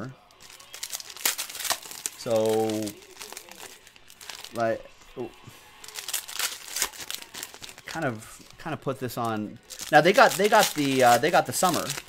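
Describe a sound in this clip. Foil card packs crinkle and rip open.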